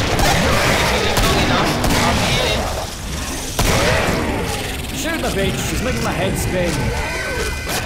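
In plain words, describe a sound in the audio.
Monsters shriek and moan nearby.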